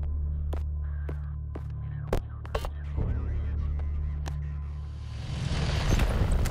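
Deep droning music plays.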